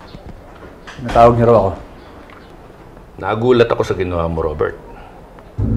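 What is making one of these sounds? An older man speaks in a low, serious voice nearby.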